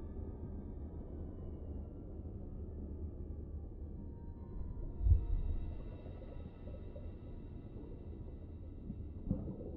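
Water churns and rumbles in a low, muffled way underwater.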